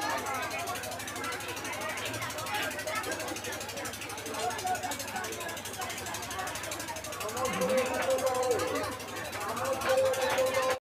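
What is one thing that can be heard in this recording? A crowd chatters loudly all around.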